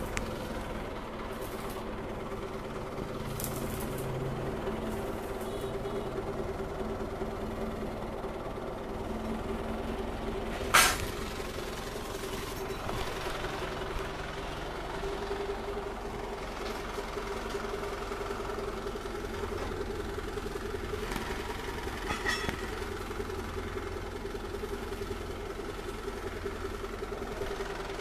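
A forklift engine idles with a steady drone.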